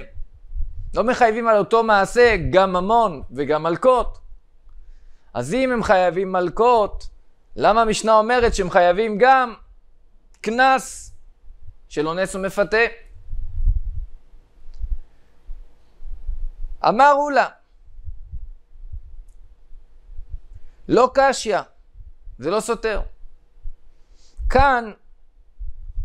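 A young man speaks calmly into a close microphone, in bursts with pauses.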